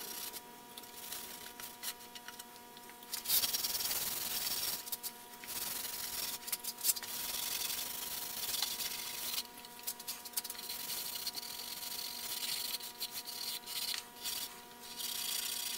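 A hand rubs a cloth over a wooden board with a soft scuffing hiss.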